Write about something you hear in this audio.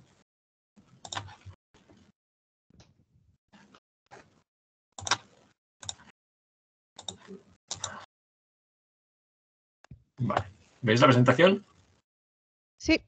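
A man speaks haltingly in a room, heard through an online call.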